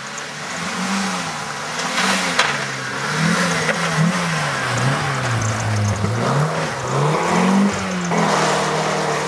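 Gravel sprays and crunches under a rally car's tyres.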